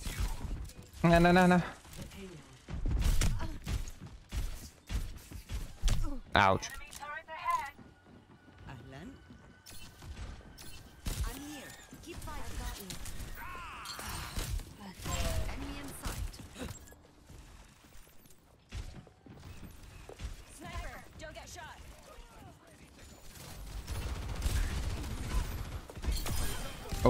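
Short electronic game effects chime and whoosh.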